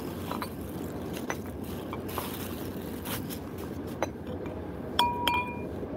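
A cloth bag and plastic wrapping rustle and crinkle as they are opened.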